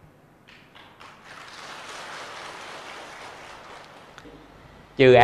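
A crowd claps softly in a large room.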